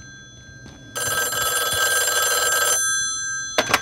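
A telephone rings loudly nearby.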